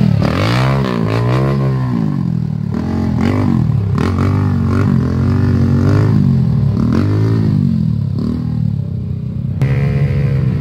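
A dirt bike engine revs and fades as it climbs away.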